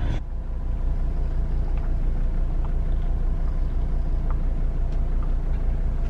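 A woman gulps down a drink in quick swallows.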